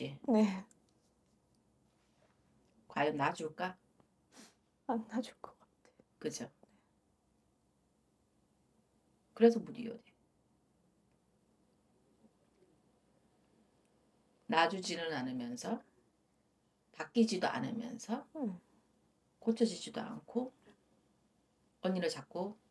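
A woman speaks calmly into a close microphone, in short bursts with pauses.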